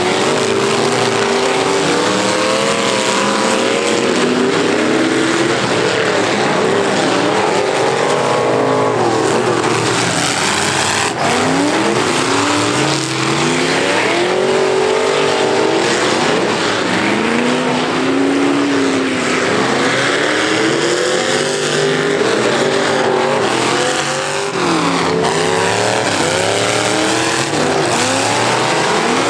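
Car engines rev loudly and roar nearby, rising and falling.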